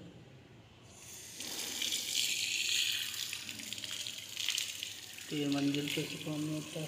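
Water runs from a tap and splashes onto a hard floor.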